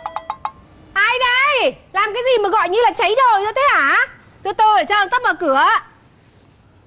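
A young woman calls out loudly with animation.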